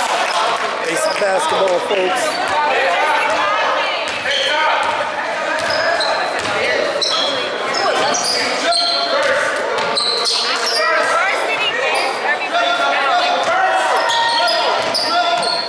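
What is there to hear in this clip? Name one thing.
Sneakers squeak sharply on a wooden court in an echoing gym.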